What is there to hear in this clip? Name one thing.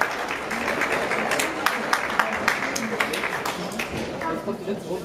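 A crowd in a large hall cheers and claps.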